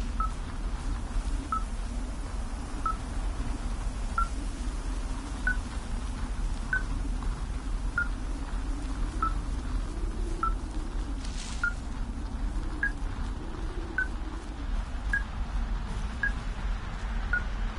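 A forest fire roars steadily.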